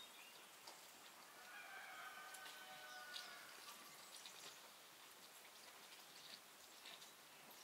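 Liquid pours steadily into a bowl.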